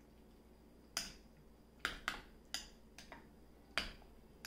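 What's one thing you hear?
A spoon clinks against a ceramic bowl.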